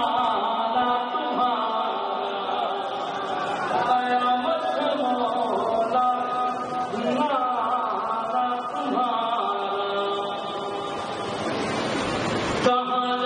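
A young man recites in a singing voice through a microphone.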